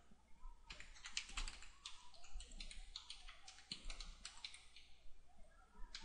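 Keys clatter softly on a computer keyboard.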